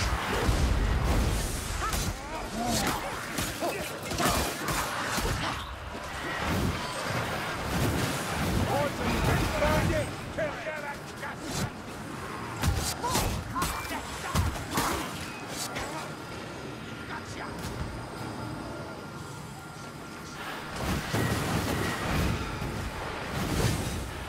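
A sword slashes into flesh during a melee fight.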